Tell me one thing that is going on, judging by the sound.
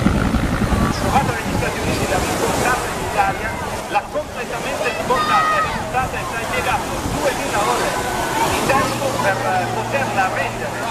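A crowd of people chatters and calls out on a beach.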